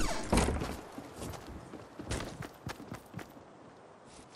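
Footsteps run quickly across grass.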